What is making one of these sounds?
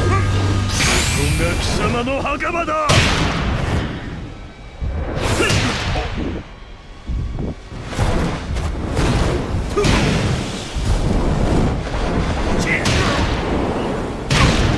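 A deep roaring rumble of explosions swells and fades.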